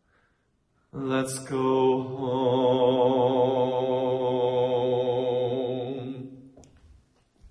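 A young man sings a long, wavering note in an echoing hall.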